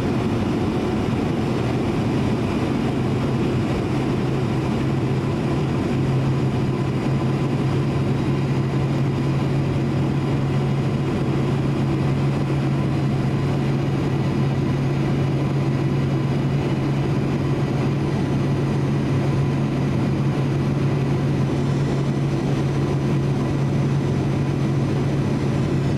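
A jet plane's engines roar in a steady low drone.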